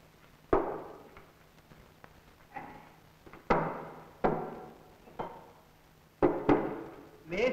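Objects thump down on a wooden table.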